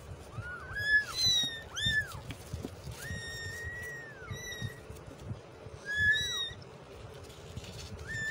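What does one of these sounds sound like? Kittens' paws scrabble on cardboard.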